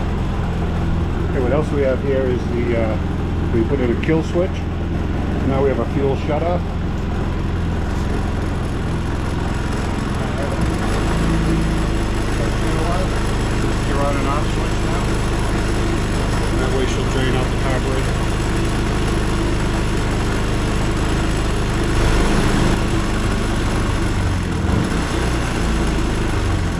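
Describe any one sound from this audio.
A small generator engine hums steadily close by.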